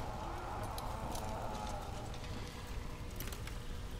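A metal lock pick scrapes and clicks inside a lock.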